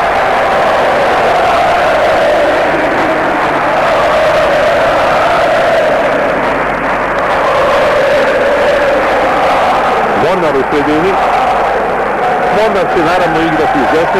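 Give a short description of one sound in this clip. A large stadium crowd chants and sings loudly and steadily.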